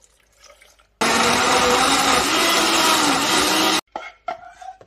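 A blender whirs loudly.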